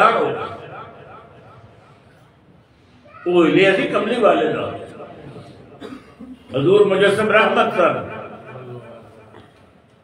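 An elderly man speaks slowly and with feeling into a microphone.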